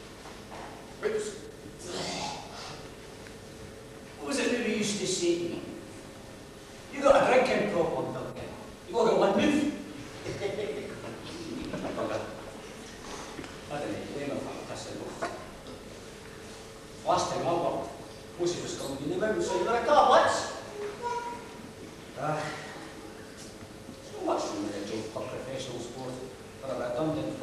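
A man speaks theatrically on a stage, heard in a hall.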